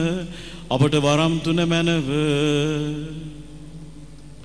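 An elderly man chants in a sustained singing voice through a microphone.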